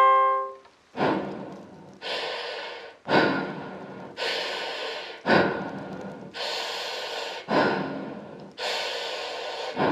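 A young woman beatboxes into a microphone in a steady, punchy rhythm.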